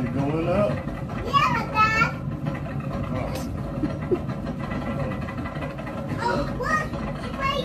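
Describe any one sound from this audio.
A small child squeals and babbles excitedly close by.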